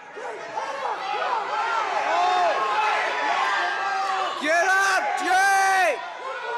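A crowd of spectators shouts and cheers loudly in an echoing gym.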